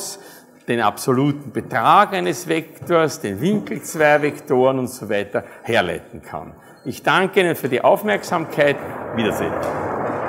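A middle-aged man lectures calmly in a large room.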